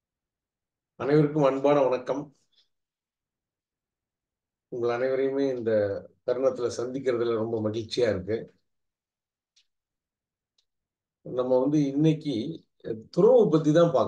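A middle-aged man speaks calmly and clearly into a close microphone, with pauses.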